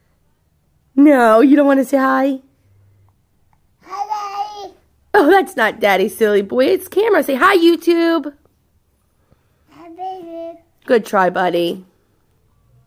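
A toddler babbles and chatters close by.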